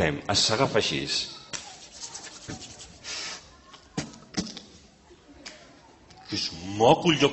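A man speaks with animation through a microphone in a large hall.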